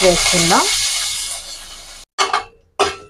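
Hot oil sizzles in a metal pan.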